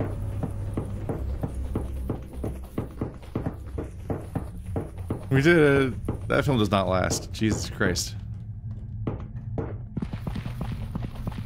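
Footsteps tread steadily on hard concrete.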